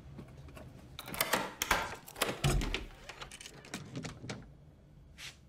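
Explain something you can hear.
Knocks sound loudly on a door.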